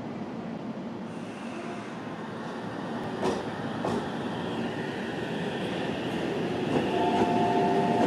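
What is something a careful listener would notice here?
An electric train hums and pulls away.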